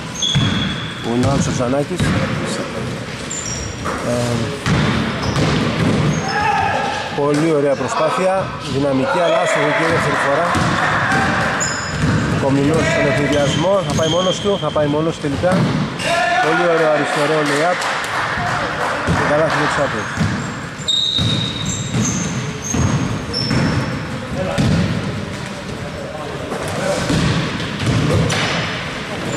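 Men shout to each other across the echoing hall.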